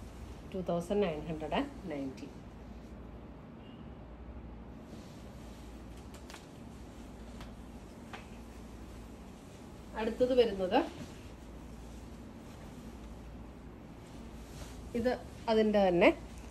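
Fabric rustles as a woman unfolds and drapes a cloth.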